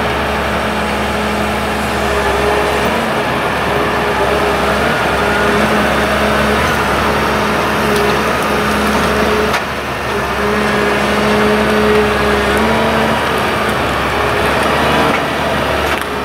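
A hydraulic crane whines as its arm moves.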